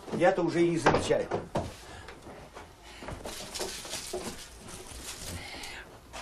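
Paper rustles as a man handles things on a table.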